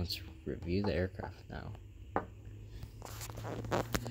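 A small plastic model knocks lightly on a wooden table.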